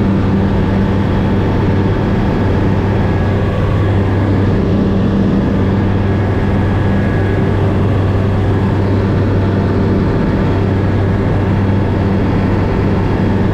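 Wind rushes past the cabin.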